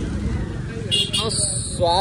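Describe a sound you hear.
A motorbike engine passes close by.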